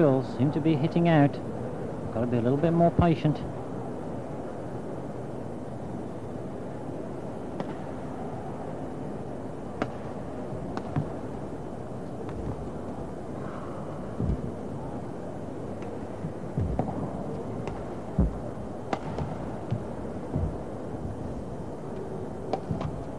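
A large crowd murmurs steadily in an echoing hall.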